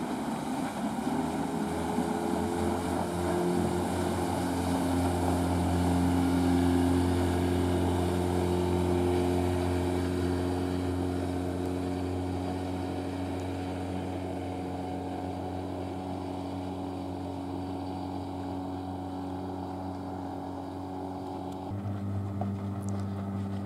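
A motorboat engine hums steadily nearby.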